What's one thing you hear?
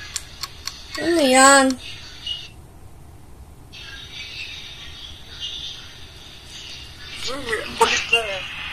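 A young woman makes drawn-out, sing-song sounds with her voice close by.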